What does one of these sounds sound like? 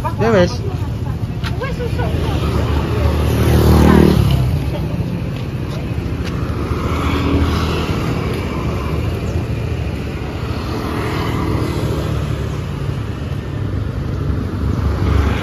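Traffic rumbles steadily on a street outdoors.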